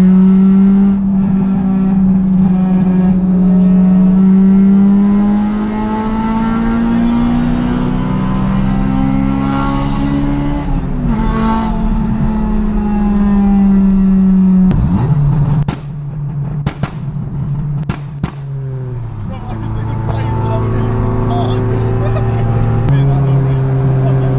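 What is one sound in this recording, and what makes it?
Tyres roar on a road.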